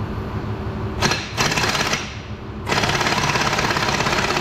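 An air impact wrench rattles loudly in bursts.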